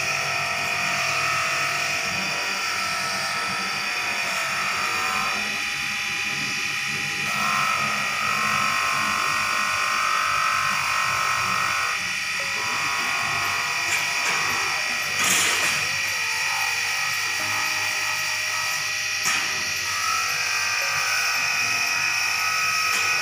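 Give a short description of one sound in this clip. A polishing wheel rasps against metal held to it.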